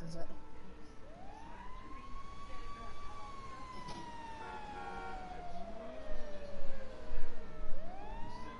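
A fire engine's siren wails and rises and falls.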